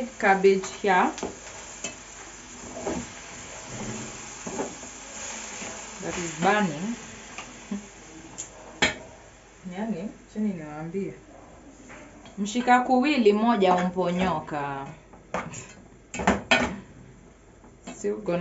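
A spoon scrapes and clinks against a metal pot.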